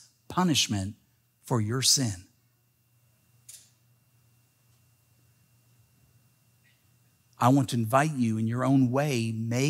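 A middle-aged man speaks with animation into a microphone, with pauses.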